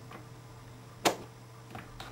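A switch clicks sharply.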